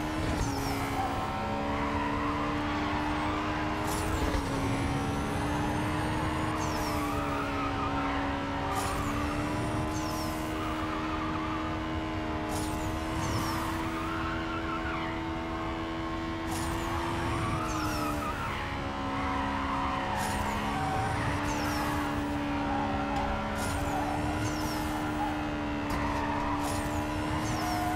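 Tyres squeal as a car drifts through bends.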